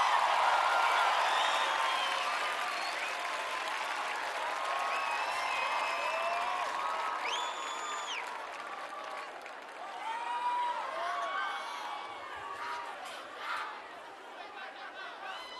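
A large crowd cheers and screams, slowly fading.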